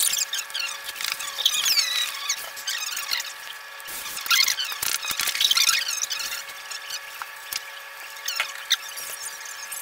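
An iron slides and scrapes over fabric.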